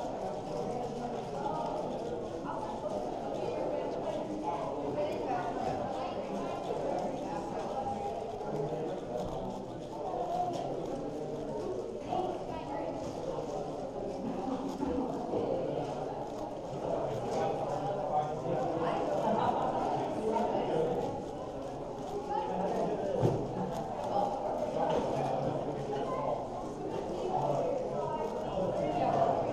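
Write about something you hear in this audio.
A puzzle cube clicks and clatters rapidly as its layers are turned.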